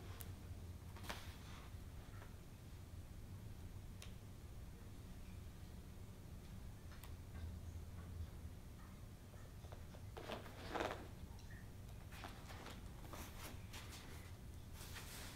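Paperback book pages rustle as they are turned.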